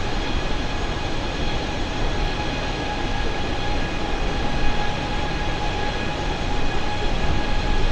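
Jet engines roar steadily with a loud rushing hum.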